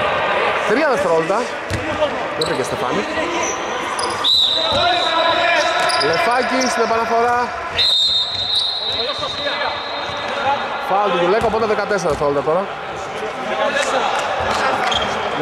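A man shouts instructions loudly in an echoing hall.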